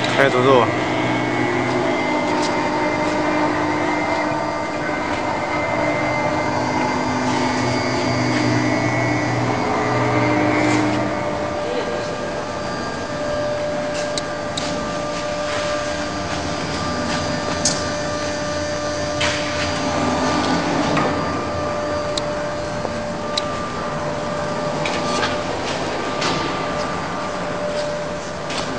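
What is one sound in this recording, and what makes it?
Machine motors hum steadily.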